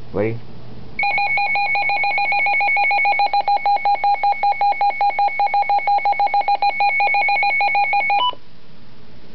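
A small electronic device beeps rapidly and steadily, in a shrill repeating tone.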